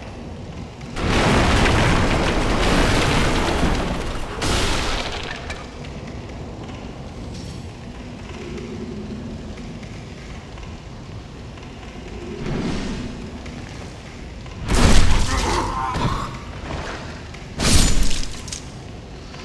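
Wooden crates and barrels smash and clatter.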